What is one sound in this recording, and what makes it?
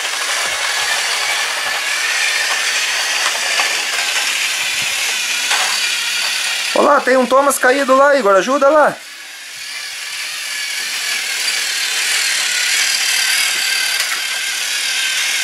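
Battery-powered toy trains whir and rattle along plastic track.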